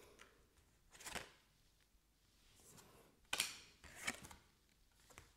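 Cards are laid down on a table with light taps.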